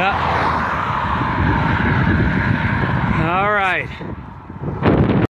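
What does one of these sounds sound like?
Wind rumbles and buffets the microphone outdoors.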